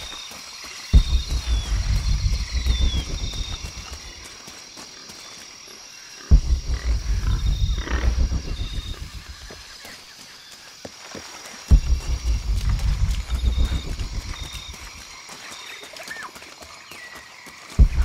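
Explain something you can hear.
Footsteps run over dirt and dry leaves.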